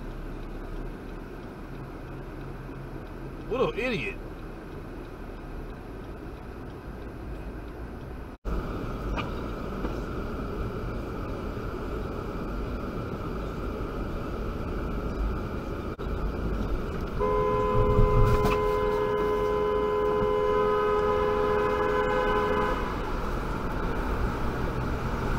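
A car drives along a road with a steady rumble of engine and tyres.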